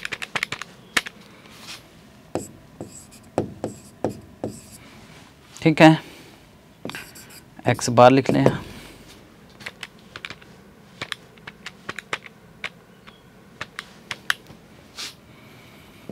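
Calculator keys click under quick taps.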